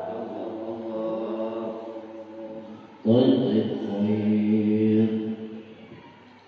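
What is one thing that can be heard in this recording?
A group of men chant together in unison, echoing in a large hall.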